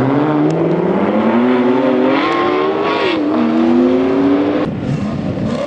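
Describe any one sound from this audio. A sports car engine roars loudly as it accelerates, its pitch climbing through the gears.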